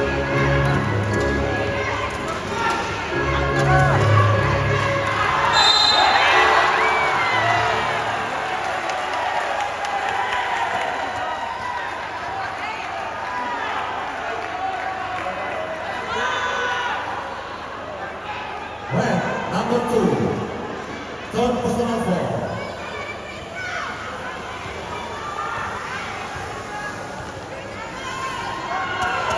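Basketball shoes squeak on the court floor.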